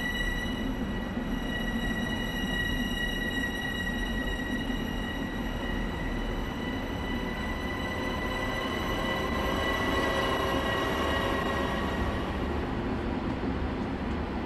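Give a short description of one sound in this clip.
A train's engine hums with a steady whine.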